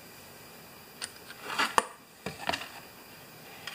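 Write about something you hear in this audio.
A plastic part knocks and clatters against a hard surface.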